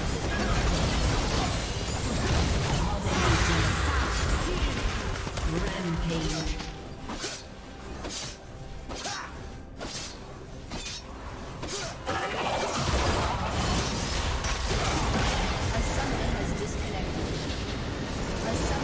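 Magic spells crackle and blast during a video game battle.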